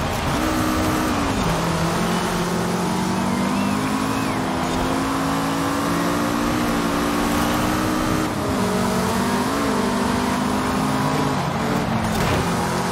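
A car engine roars loudly, its pitch rising and dropping as the gears shift.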